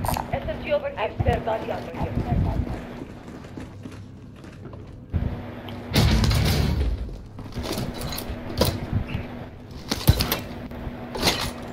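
Short clicks sound as items are picked up.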